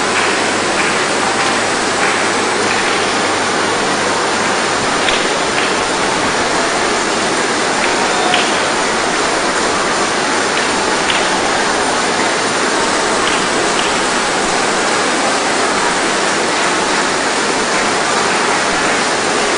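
A large crowd murmurs and prays aloud in a vast echoing hall.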